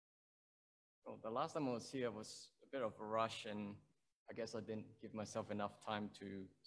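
A young man speaks calmly into a microphone, heard through an online call.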